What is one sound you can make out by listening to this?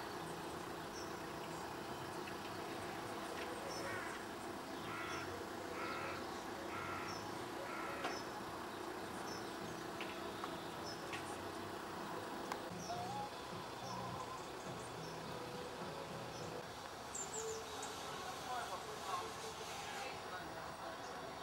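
A small train rumbles and clatters along a track outdoors.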